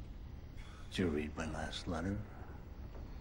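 An elderly man snores loudly.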